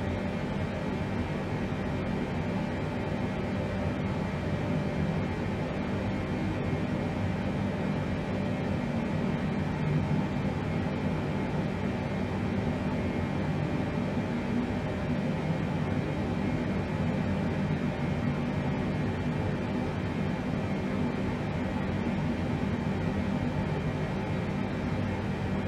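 Jet engines hum with a steady, low drone.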